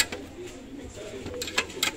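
A plastic plate clacks against a stack of plates as it is lifted.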